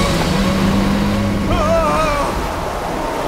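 A man screams in panic.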